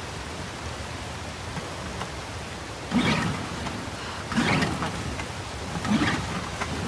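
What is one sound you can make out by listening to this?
Water laps gently.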